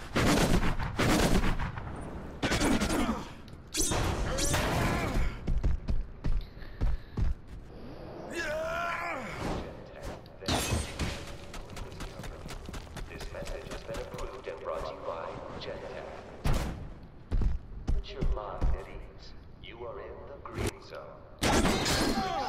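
Heavy thuds land again and again.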